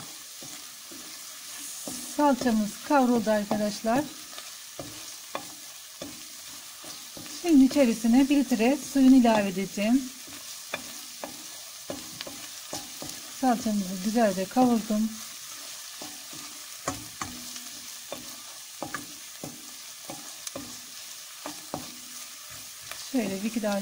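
A wooden spoon scrapes and taps against a metal pot.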